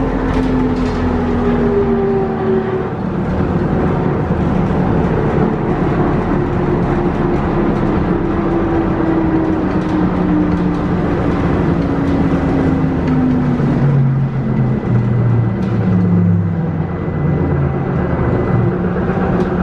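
A bus engine hums and whines, shifting pitch as the bus drives on.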